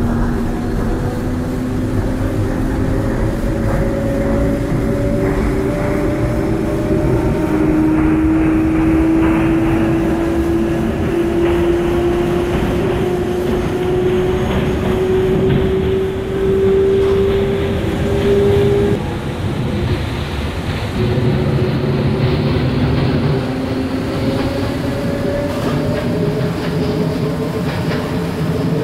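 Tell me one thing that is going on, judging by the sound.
An electric multiple-unit train's traction motors whine, rising in pitch as it accelerates.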